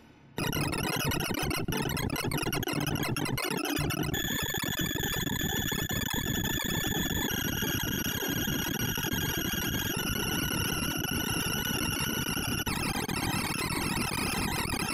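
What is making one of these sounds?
Rapid electronic tones chirp and buzz in a dense, unbroken stream.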